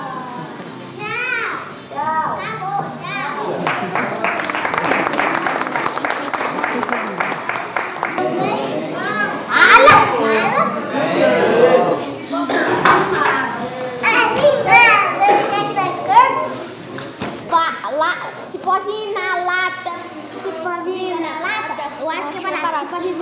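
A puppeteer speaks in lively, high-pitched character voices close by.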